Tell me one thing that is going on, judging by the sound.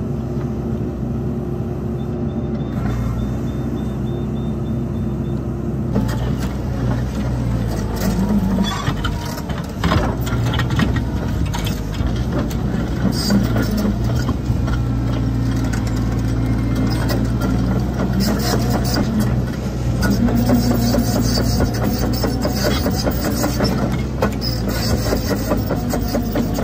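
A diesel tracked excavator engine runs under load.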